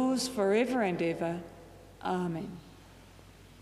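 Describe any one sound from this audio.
An elderly man sings a short chant through a microphone in an echoing room.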